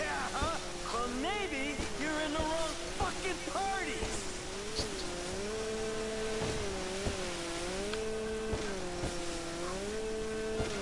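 A jet ski engine drones and revs up and down.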